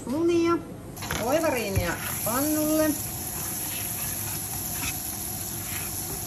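Butter sizzles and crackles in a hot pan.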